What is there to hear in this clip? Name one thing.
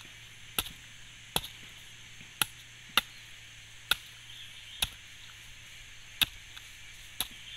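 A hammer knocks sharply on a coconut husk in slow, uneven blows.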